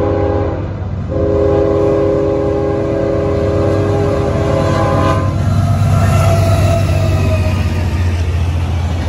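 A diesel locomotive engine rumbles deeply as it passes.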